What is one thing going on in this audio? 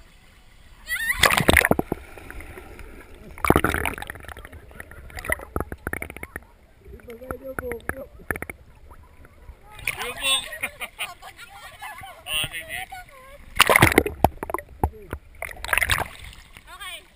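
Water splashes loudly in a pool.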